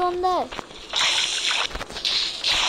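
Water splashes.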